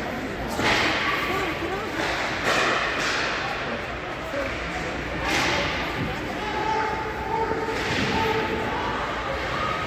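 Skates scrape and carve across the ice in a large echoing rink.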